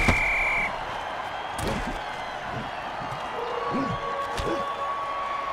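Players collide with heavy thuds.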